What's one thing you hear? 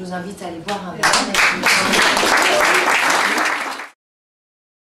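A small audience claps.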